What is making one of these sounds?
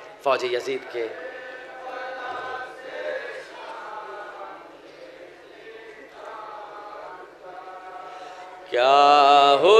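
A young man chants a lament loudly through a microphone and loudspeakers.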